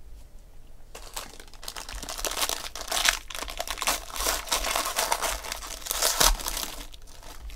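A foil wrapper crinkles and tears as hands open it.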